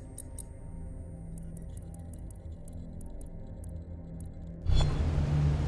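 Soft clicks tick rapidly several times.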